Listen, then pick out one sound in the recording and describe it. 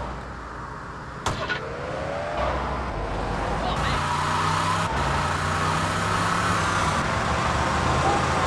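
A car engine revs and runs as a car drives along a street.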